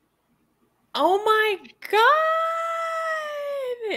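A young woman squeals excitedly over an online call.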